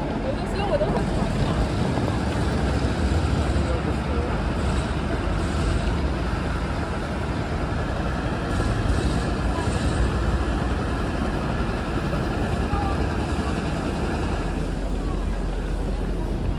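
A busy crowd murmurs and chatters outdoors.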